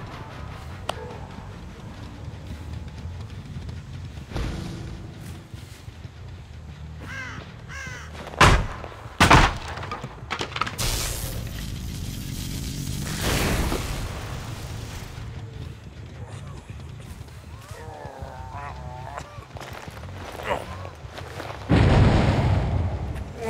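Footsteps rustle through tall dry stalks.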